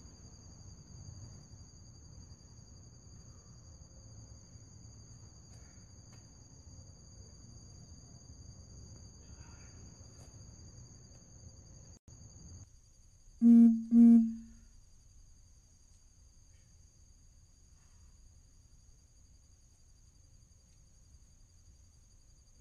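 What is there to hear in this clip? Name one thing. Footsteps and light thuds sound faintly as a person exercises on metal bars outdoors.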